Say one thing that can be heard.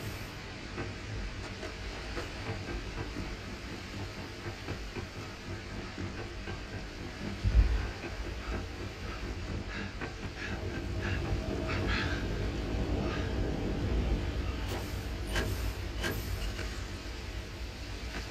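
Heavy boots clank on metal walkways and stairs.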